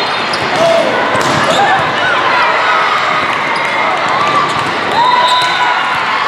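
A volleyball thumps off hands and arms.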